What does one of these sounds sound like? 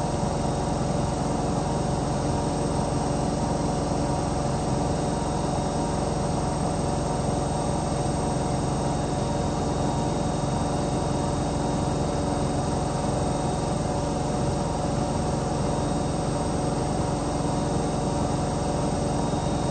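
A washing machine drum turns with a steady hum and whir.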